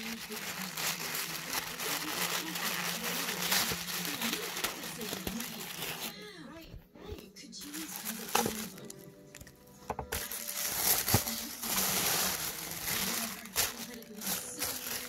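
Tissue paper rustles and crinkles close by.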